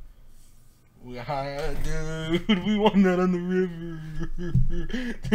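A young man talks excitedly and laughs, close to a microphone.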